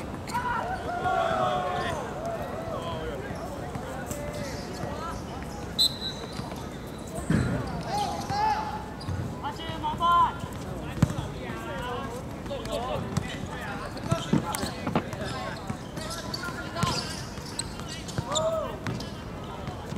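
Young men shout and call to each other outdoors across a playing field.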